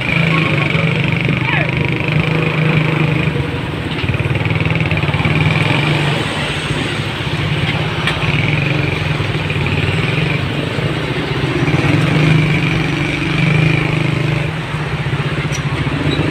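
Heavy truck engines rumble nearby.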